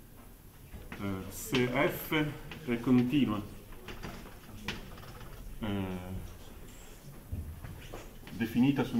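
A man lectures nearby, speaking in short bursts.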